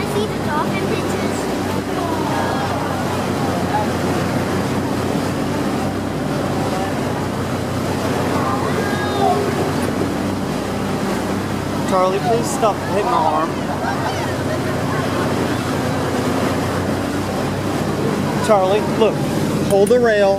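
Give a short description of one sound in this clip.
Churning boat wake water rushes and splashes steadily.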